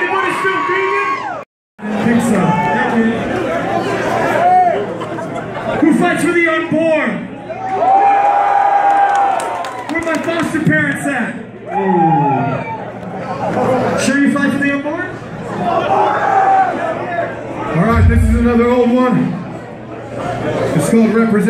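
A rock band plays loudly with electric guitars and drums.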